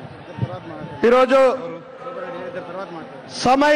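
A middle-aged man speaks loudly into a microphone over loudspeakers, with strong emphasis.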